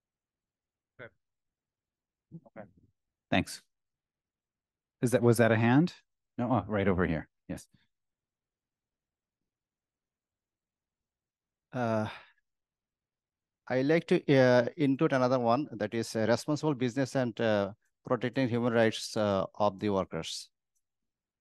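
A man speaks with animation into a microphone in a large room.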